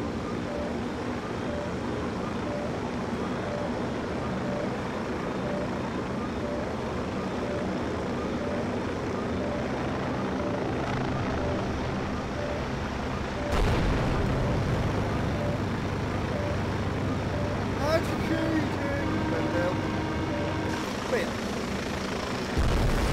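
A helicopter's rotor and engine drone steadily from inside the cockpit.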